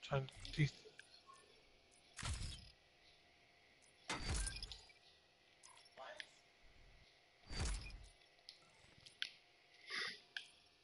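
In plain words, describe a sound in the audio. Short whooshing menu sounds play every few seconds.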